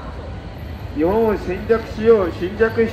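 An elderly man speaks loudly and emphatically outdoors.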